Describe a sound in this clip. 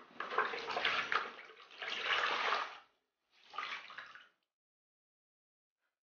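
Water splashes in a basin as a cloth is wrung out.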